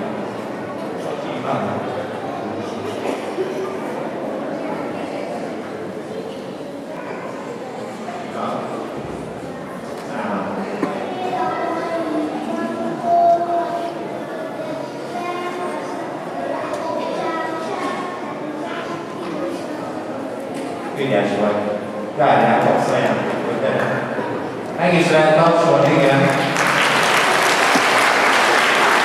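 Children chatter and murmur nearby in a large echoing hall.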